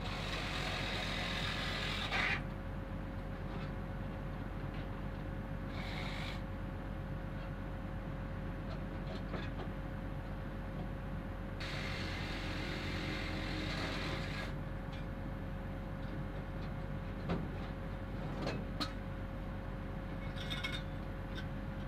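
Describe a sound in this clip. Metal tools clink and scrape under a vehicle.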